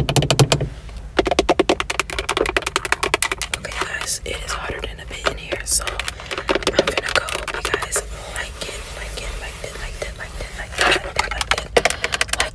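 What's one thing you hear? Fingernails tap and scratch on a leather steering wheel, very close.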